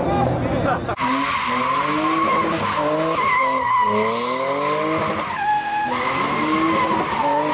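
Tyres squeal loudly on pavement.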